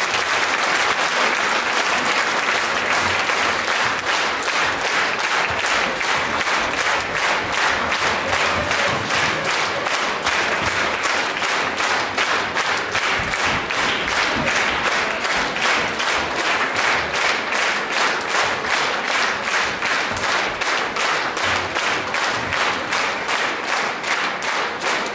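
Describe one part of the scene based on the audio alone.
An audience claps in steady rhythm in a large hall.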